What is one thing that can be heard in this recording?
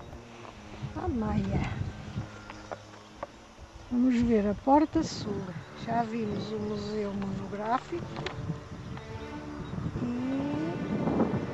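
An elderly woman reads aloud nearby, outdoors.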